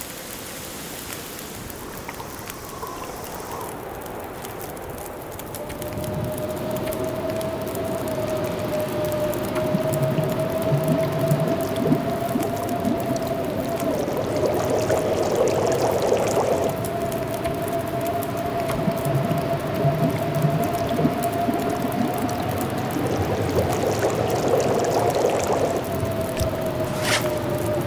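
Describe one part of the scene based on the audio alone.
A campfire crackles steadily.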